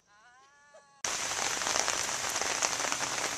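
Rain patters steadily on a car.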